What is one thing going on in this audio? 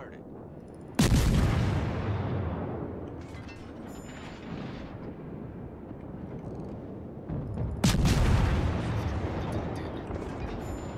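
Heavy naval guns fire with loud booming blasts that rumble away.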